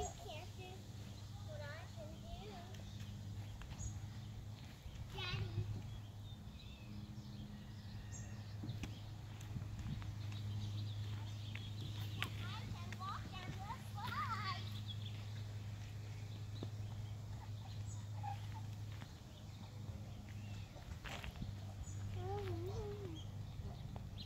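A toddler babbles softly nearby.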